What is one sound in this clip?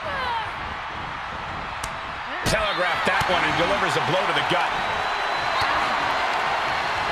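A crowd cheers in a large arena.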